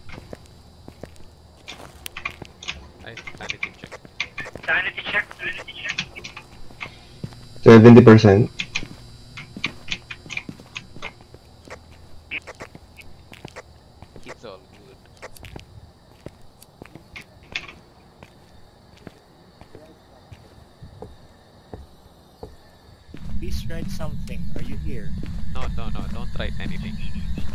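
Footsteps tap steadily on a hard path.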